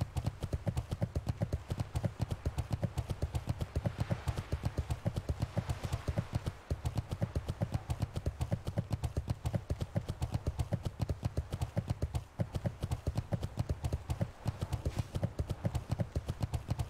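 Hooves thud rapidly in a quick, steady gallop.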